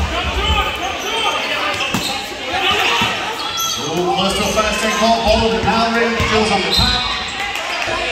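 A man shouts loudly, calling to teammates.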